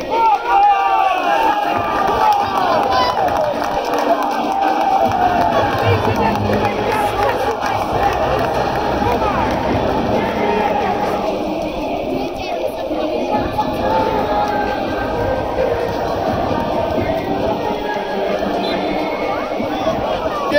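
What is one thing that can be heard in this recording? A large stadium crowd chatters and murmurs all around, outdoors.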